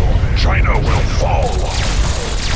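An explosion roars and rumbles.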